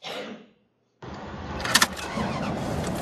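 A car engine roars loudly.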